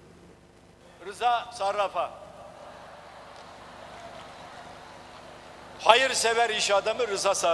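An elderly man speaks firmly into a microphone in a large echoing hall.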